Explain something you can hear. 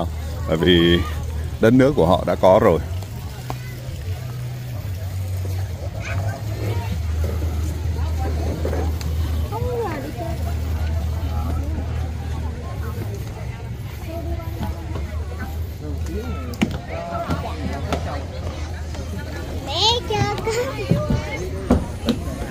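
Men and women chat and talk in the background outdoors.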